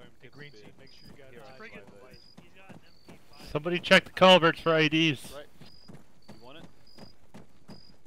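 Footsteps crunch on a dirt road.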